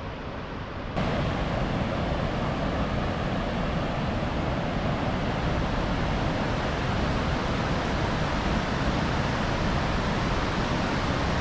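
River water rushes and roars steadily over a low weir close by.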